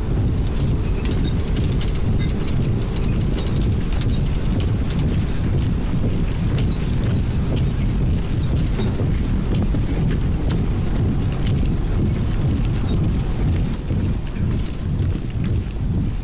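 Many soldiers' boots tramp steadily on dusty ground.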